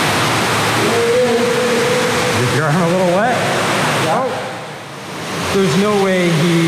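A man speaks in an echoing tunnel.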